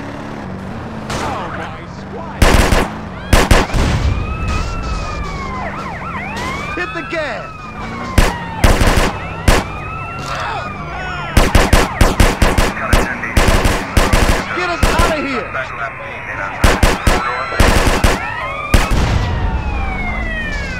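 Police sirens wail nearby, rising and falling.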